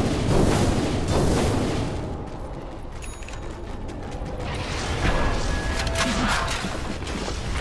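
Spell effects crackle and whoosh during a game battle.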